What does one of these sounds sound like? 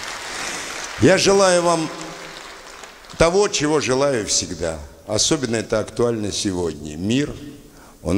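An elderly man speaks with animation through a microphone and loudspeakers.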